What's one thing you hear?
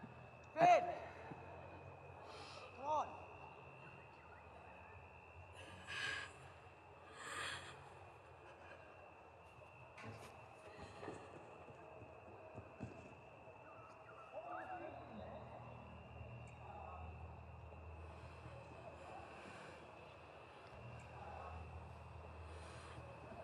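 A young woman sobs and cries close by.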